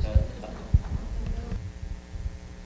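A man speaks quietly at a distance.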